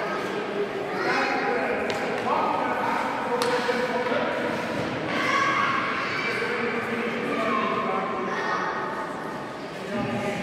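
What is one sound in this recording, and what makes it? Skate blades scrape across ice.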